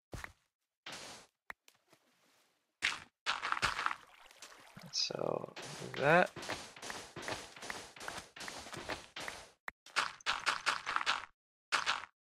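Blocks of sand and dirt crunch as they are dug out in quick repeated strokes.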